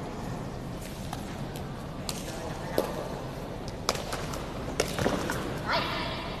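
Sneakers squeak on a hard court floor in a large echoing hall.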